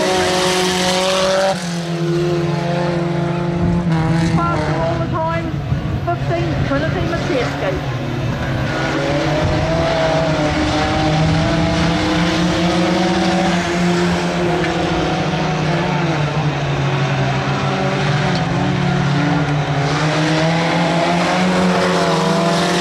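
Race car engines roar loudly, revving up and down as the cars speed past.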